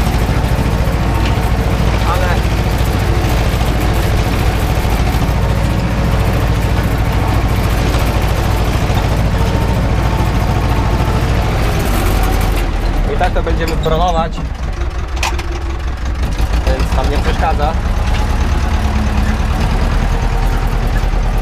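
A cultivator rattles and clanks over tilled soil.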